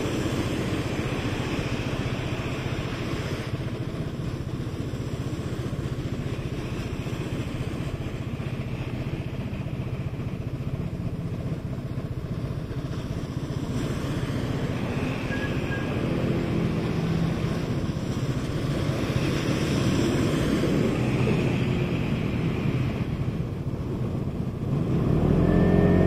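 A scooter engine idles steadily close by.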